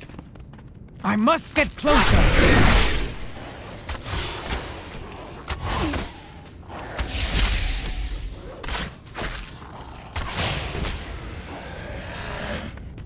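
Blades clash and strike repeatedly in a fight.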